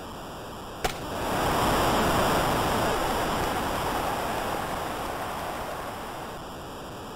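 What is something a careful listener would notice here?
A crowd cheers loudly and slowly fades.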